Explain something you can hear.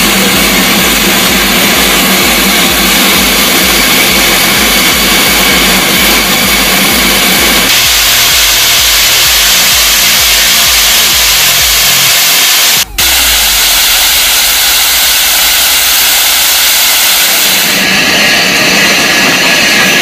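Steam hisses loudly from a steam locomotive.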